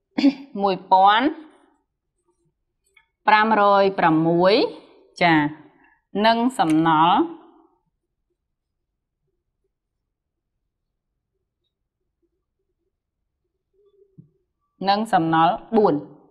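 A young woman speaks calmly and clearly, close by, in short phrases with pauses.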